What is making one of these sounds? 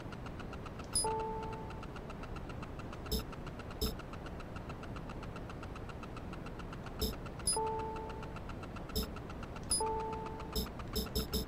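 Soft electronic chimes ring briefly after some selections.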